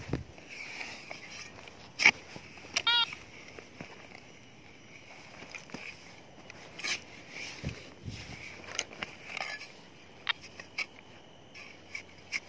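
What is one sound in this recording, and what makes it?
A spade digs into soil and scrapes through dirt.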